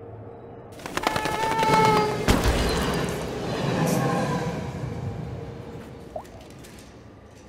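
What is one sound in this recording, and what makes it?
A train rumbles in.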